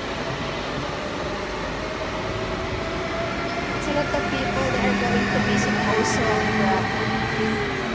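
A train rolls by along a platform with a steady rumble.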